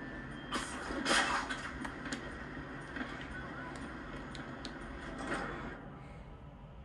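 Video game sounds and music play through a television speaker.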